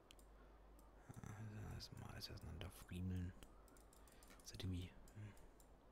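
Short electronic clicks sound as building blocks snap into place.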